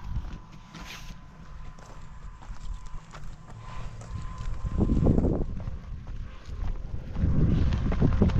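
Footsteps crunch on a rocky path.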